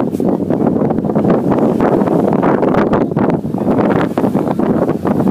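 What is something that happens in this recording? Wind blows hard against a microphone outdoors.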